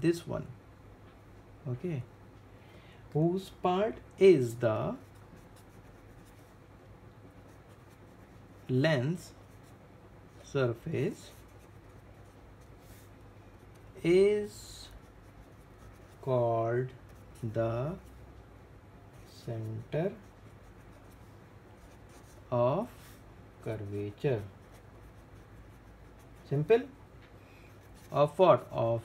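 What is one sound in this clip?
A felt-tip marker scratches softly on paper.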